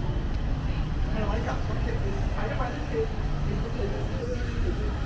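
Women talk nearby.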